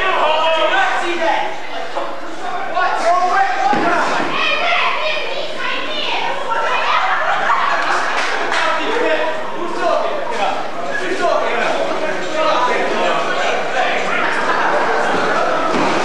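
A small crowd of men shouts and cheers nearby.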